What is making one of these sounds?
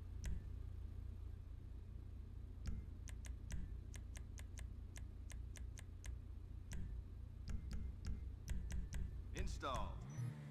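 Menu selections click quickly and repeatedly.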